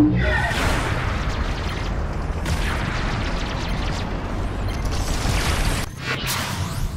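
Energy beams zap and crackle in a video game.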